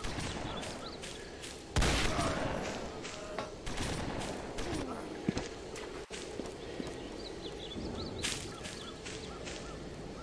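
Footsteps patter steadily on grass.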